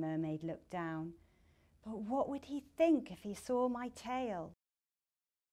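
A woman speaks expressively and close to a microphone.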